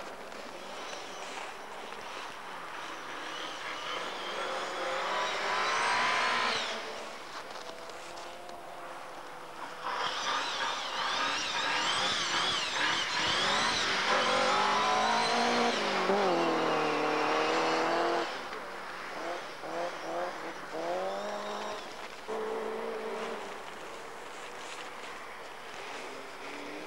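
A rally car engine revs hard, rising and falling as the car roars past.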